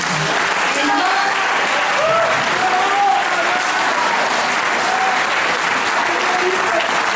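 A middle-aged woman sings loudly into a microphone, heard through a loudspeaker.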